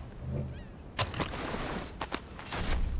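Cloth rustles as a body is searched.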